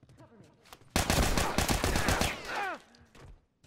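Gunshots blast loudly in rapid bursts.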